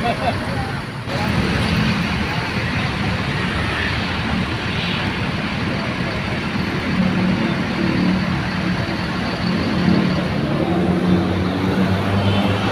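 A large bus engine idles with a deep hum as the bus rolls slowly past, close by.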